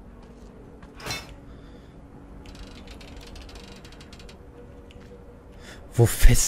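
Metal creaks and clanks as a padlock is forced.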